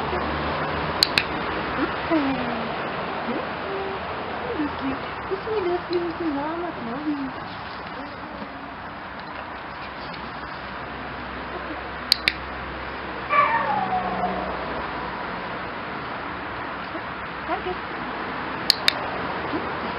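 A clicker clicks sharply a few times.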